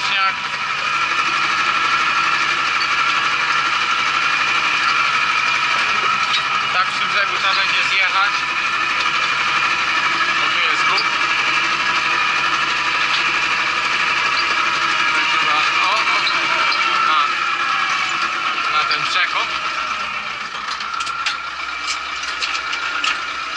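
A tractor engine drones steadily, heard from inside its cab.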